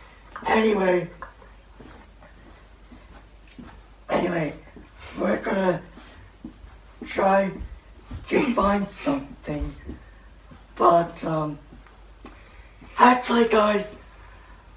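A young woman speaks in short, animated bursts.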